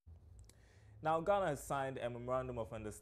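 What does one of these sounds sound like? A young man speaks calmly and clearly into a microphone.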